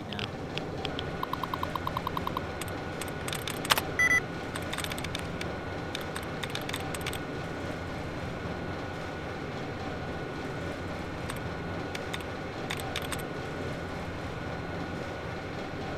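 A computer terminal clicks and beeps as text scrolls.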